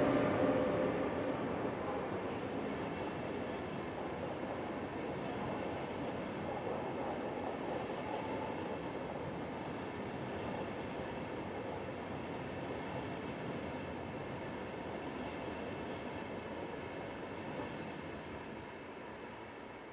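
An electric passenger train rolls past, its wheels rumbling on the rails.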